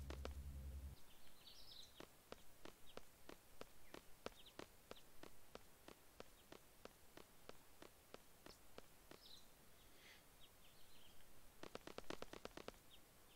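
Footsteps patter quickly on the ground.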